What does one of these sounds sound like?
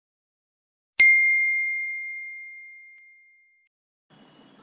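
A bell chimes once and rings out slowly.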